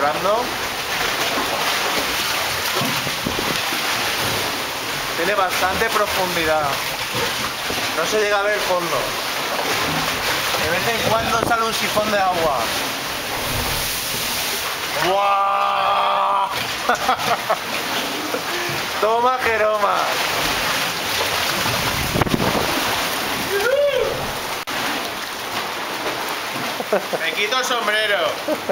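Sea water sloshes and splashes against rock, echoing in a cave.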